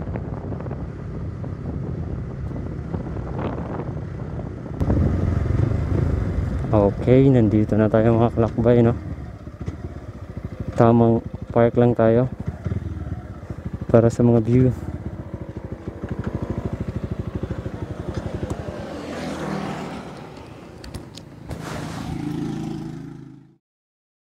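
A motorcycle engine idles and revs with a low, steady putter.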